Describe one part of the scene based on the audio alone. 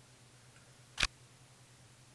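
A playing card snaps into place with a short click.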